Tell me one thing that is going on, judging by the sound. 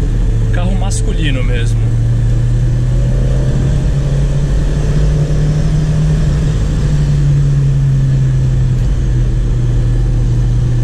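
A car engine hums steadily from inside the car while driving.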